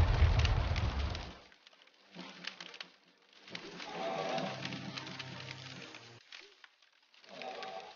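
Flames crackle and hiss.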